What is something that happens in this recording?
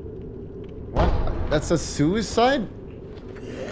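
A young man exclaims loudly and with animation into a close microphone.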